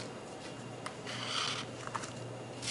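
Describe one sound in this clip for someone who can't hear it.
A scraper scrapes across a small metal plate.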